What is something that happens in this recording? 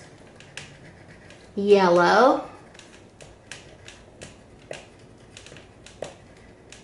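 A marker scratches and squeaks on paper in quick strokes.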